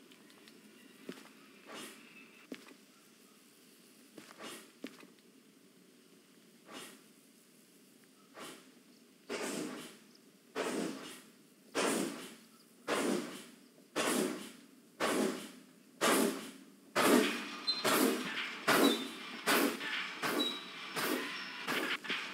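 A steam locomotive chuffs in heavy puffs that quicken as it gathers speed.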